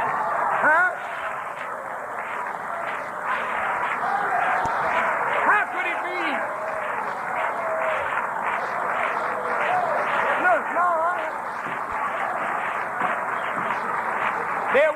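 A man speaks forcefully into a microphone, heard through a loudspeaker with a hissy, old-tape sound.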